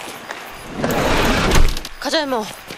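A car door is pulled open with a rush.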